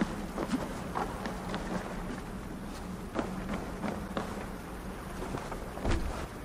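Footsteps creak on wooden planks.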